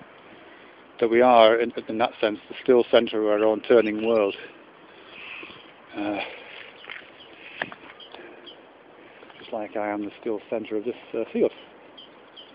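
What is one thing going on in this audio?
A middle-aged man talks calmly, close to the microphone, outdoors.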